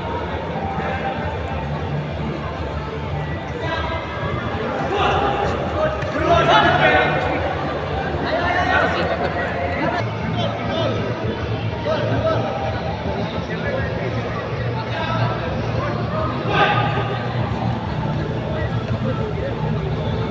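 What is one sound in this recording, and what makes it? A crowd murmurs and chatters steadily.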